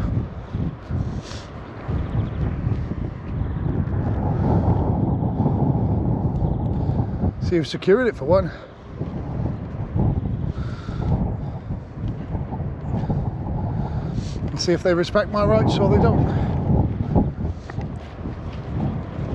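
A car drives slowly past on the road nearby.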